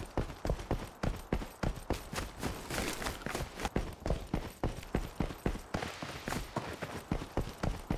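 Quick footsteps run over rough ground.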